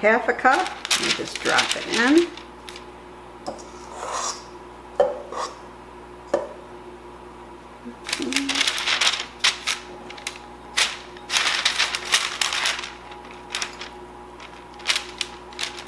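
A metal scoop scrapes and taps on parchment paper.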